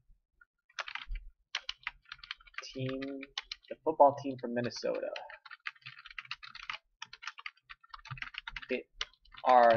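Keys click rapidly on a keyboard as someone types.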